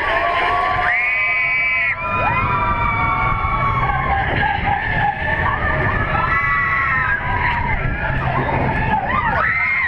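Riders scream and cheer loudly on a roller coaster.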